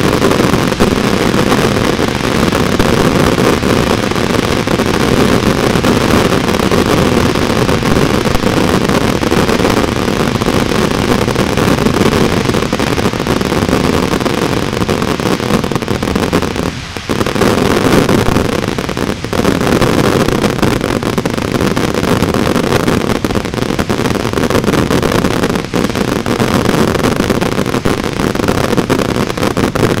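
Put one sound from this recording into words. Fireworks crackle and fizz loudly without pause.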